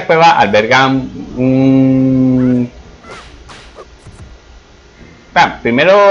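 A sword swishes and strikes in quick slashes.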